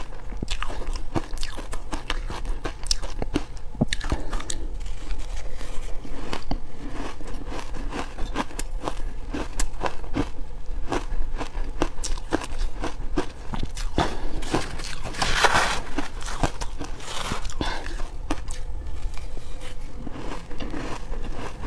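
A young woman chews crunchy shaved ice loudly and close to a microphone.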